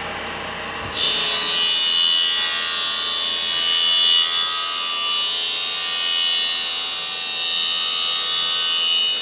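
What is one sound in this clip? A grinding wheel screeches loudly against metal.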